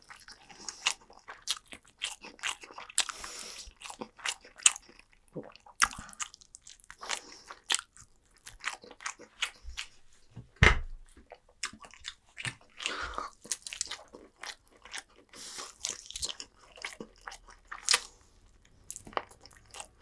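Food crackles and rustles in a person's hands close to a microphone.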